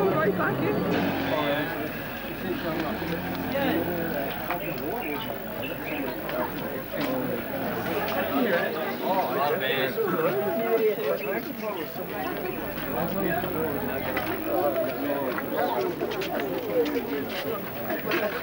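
Many people talk and call out in a busy street.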